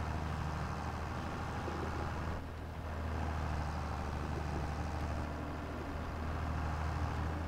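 A tractor engine hums steadily from inside the cab.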